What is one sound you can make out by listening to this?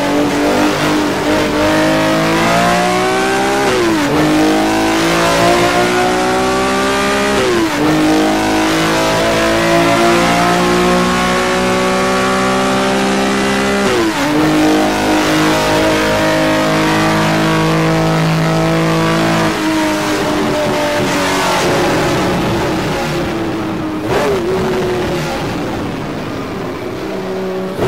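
A racing car engine roars over loudspeakers, its revs climbing and dropping sharply at each gear change.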